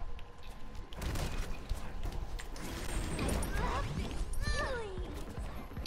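Weapons clash and swish in a brief fight.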